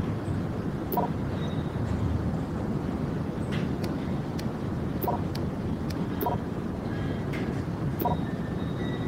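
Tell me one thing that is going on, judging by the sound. Menu buttons click softly as options are chosen.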